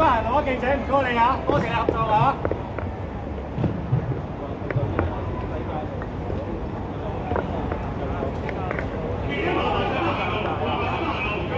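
Boots tramp on pavement as a group walks quickly past.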